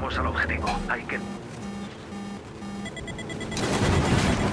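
A missile warning beeps rapidly.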